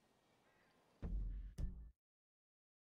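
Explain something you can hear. A game menu opens with a loud low thump.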